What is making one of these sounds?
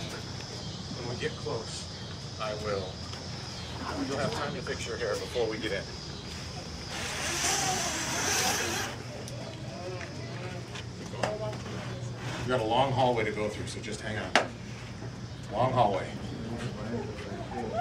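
A man and a woman talk in lively voices close by.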